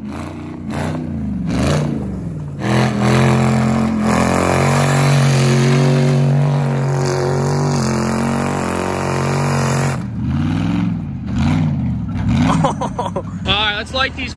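Tyres spin and skid on loose dirt.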